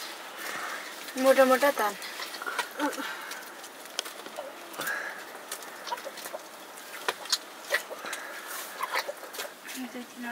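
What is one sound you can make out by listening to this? Dried meat rustles and knocks as hands handle the strips.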